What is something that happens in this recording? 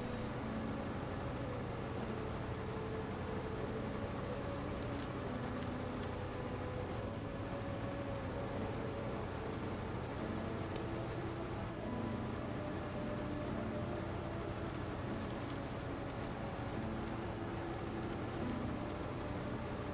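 A heavy truck engine rumbles and strains, shifting pitch as it climbs.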